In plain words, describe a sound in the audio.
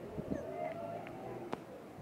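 Footsteps scuff on paving nearby.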